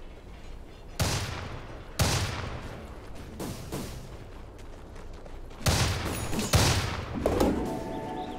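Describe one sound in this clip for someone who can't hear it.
Loud magic blasts boom and crackle again and again.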